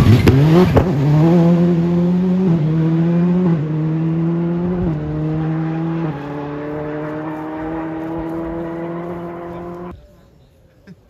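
A rally car engine climbs through the gears as it speeds away into the distance.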